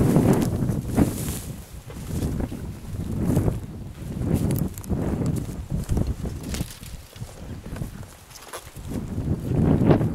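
Footsteps crunch through dry brush outdoors.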